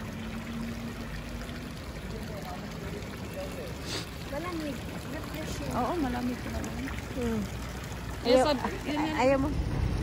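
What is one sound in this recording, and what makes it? Water splashes in a fountain.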